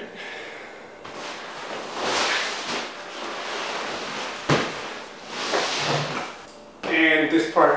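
A heavy cushioned couch rustles and thumps as it is moved into place.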